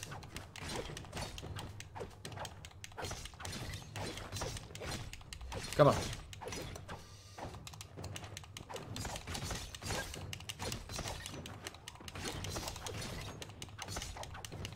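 Rapid shots and impacts ring out in quick bursts.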